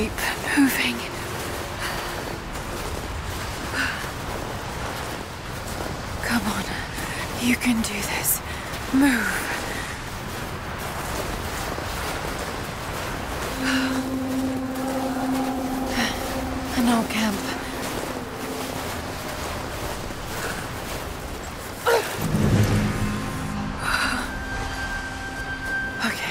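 Strong wind howls steadily.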